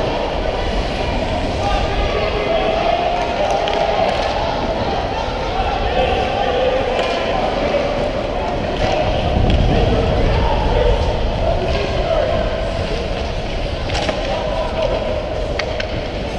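Skate blades scrape and swish on ice close by.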